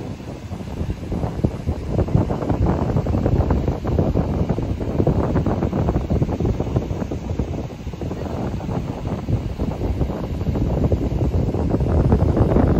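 Water fountains spray and splash into a canal.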